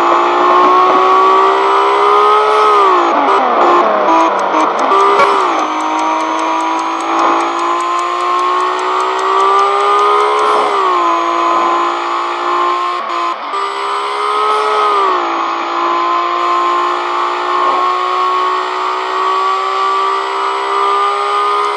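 A sports car engine revs hard at high speed, shifting up through the gears.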